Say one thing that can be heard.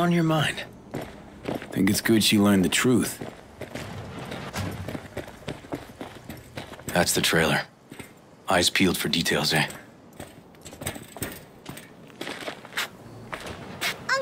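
Footsteps thud on wooden and gravel ground.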